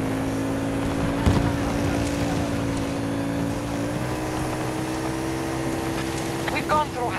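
Tyres rumble over rough ground.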